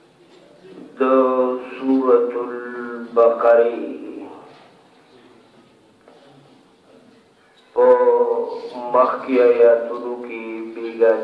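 A man chants in a melodic, sustained voice nearby, with pauses between phrases.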